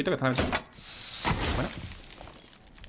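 A smoke grenade hisses loudly.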